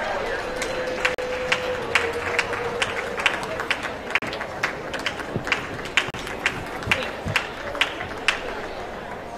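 Spectators clap in a steady rhythm.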